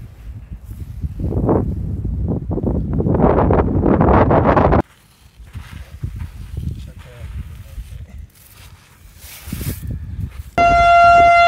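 A hand scrapes and digs through loose gravel close by.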